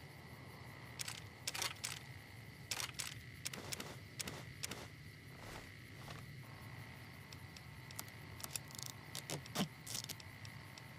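Short menu clicks sound as items are picked one after another.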